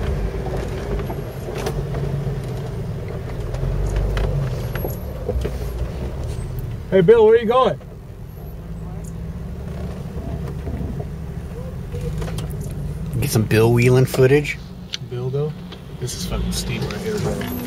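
A vehicle engine rumbles low and steadily.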